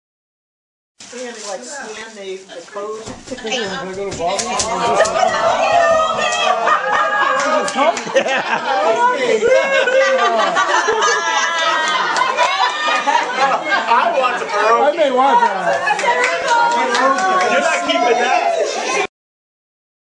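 A middle-aged woman laughs loudly and exclaims with excitement.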